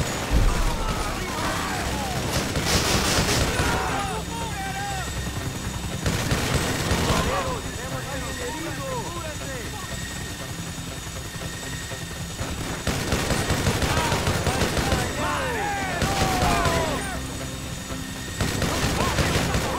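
A rapid-fire gun shoots in long, loud bursts.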